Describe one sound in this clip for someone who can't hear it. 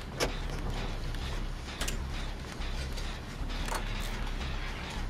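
Metal parts rattle and clink as an engine is worked on by hand.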